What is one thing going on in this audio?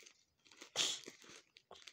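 Scissors snip through plastic wrapping.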